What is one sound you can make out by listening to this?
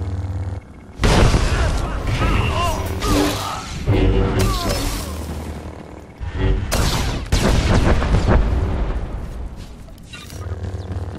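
Lightsabers clash and hum in a fight.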